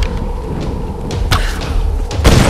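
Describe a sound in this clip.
A bowstring twangs as an arrow is loosed.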